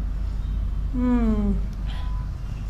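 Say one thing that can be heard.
A young woman hums with pleasure while tasting food.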